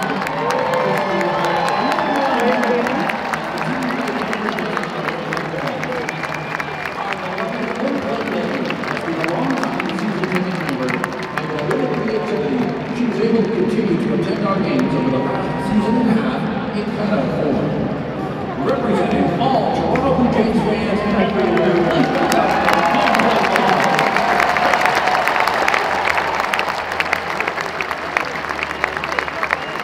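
A large crowd chatters and cheers in a large echoing stadium.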